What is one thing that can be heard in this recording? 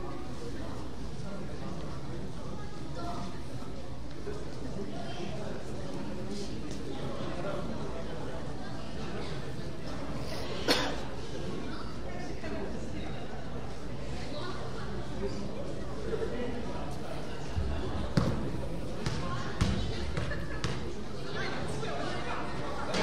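A crowd of children and adults murmurs and chatters in a large echoing hall.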